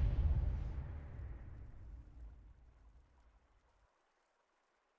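A deep magical rumble booms and slowly fades away.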